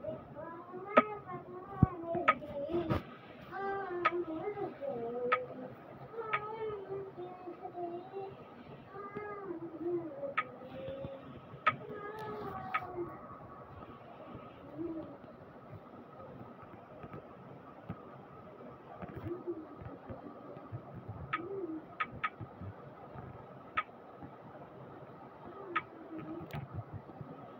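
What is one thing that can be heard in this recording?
A game menu button clicks sharply several times.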